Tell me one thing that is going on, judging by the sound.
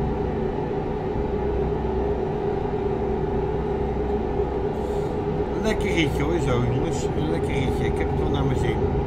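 A truck engine hums steadily while driving on a highway.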